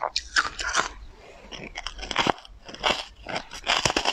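A young woman bites into a soft crumbly cake with a wet squish.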